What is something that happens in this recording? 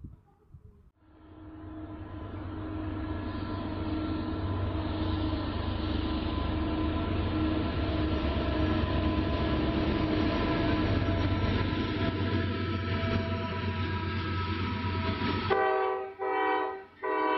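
A diesel locomotive rumbles closer and grows louder.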